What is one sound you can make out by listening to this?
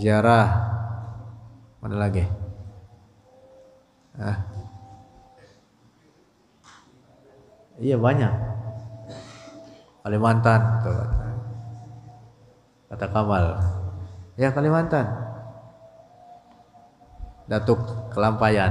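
A young man speaks calmly and close into a microphone, in phrases with pauses, in a reverberant room.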